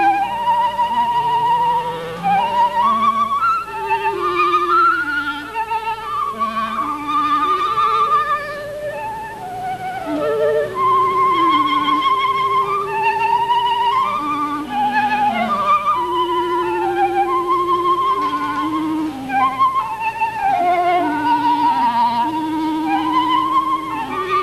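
A flute plays a melody through a microphone.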